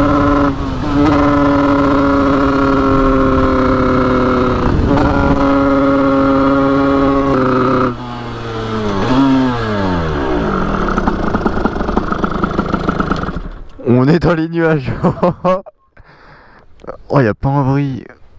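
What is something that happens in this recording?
A dirt bike engine roars loudly at high revs, then drops and revs in short bursts.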